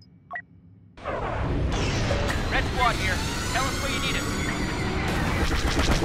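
Starfighter engines roar.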